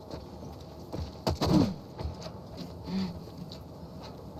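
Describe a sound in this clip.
A metal ladder clanks as someone climbs it.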